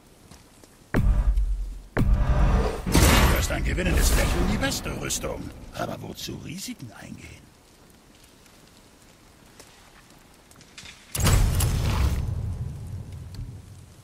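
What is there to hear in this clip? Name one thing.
A deep magical whoosh swells and rumbles, then fades.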